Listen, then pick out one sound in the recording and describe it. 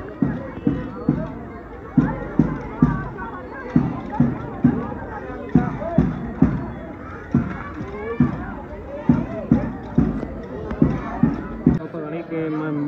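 A crowd of young people chants as they march outdoors.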